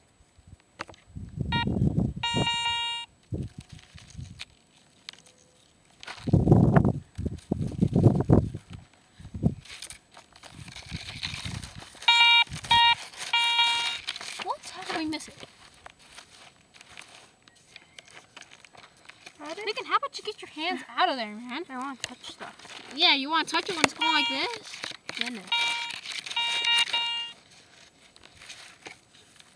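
Dirt and pebbles crunch and scrape under hands digging.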